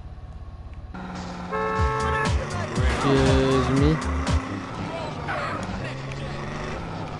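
A car engine starts and revs as the car drives off.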